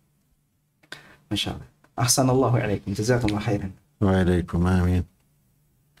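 An elderly man speaks slowly and expressively into a microphone.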